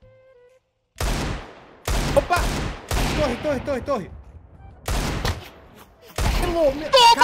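Gunshots ring out from a video game.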